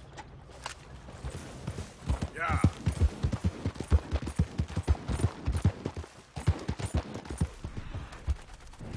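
A horse's hooves pound the ground at a gallop.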